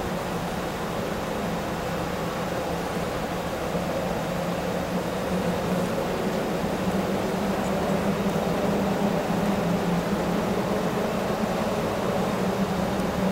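A snowmobile engine idles steadily nearby, growing slightly louder.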